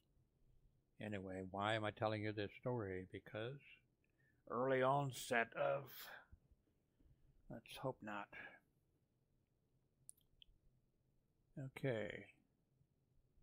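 An older man talks calmly into a close microphone, in short bursts.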